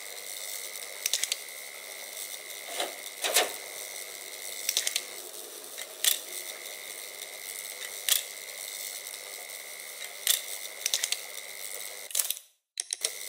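Electric sparks crackle in short bursts.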